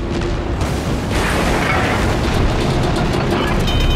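Heavy guns boom and rumble.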